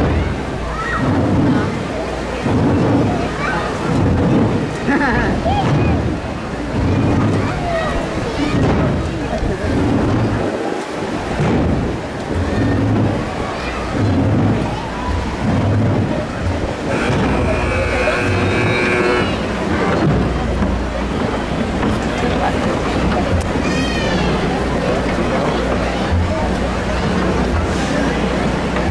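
A large crowd murmurs and chatters nearby.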